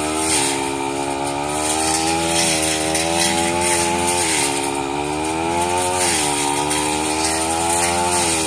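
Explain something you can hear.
A brush cutter blade slashes through tall grass and reeds.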